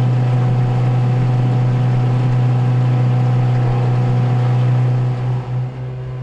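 A boat's outboard motor drones loudly and steadily up close.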